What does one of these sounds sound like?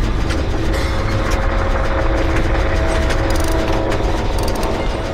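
Metal parts clatter and rattle steadily as an engine is worked on.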